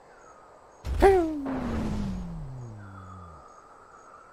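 A rock is thrown and whistles away through the air.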